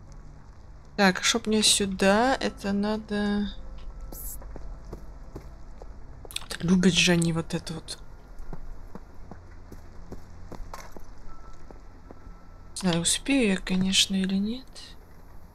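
A young person speaks with animation into a close microphone, in short bursts.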